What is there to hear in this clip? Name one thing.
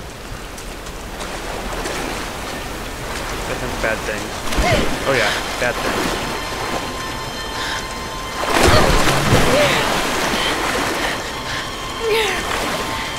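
Rushing water roars and splashes loudly.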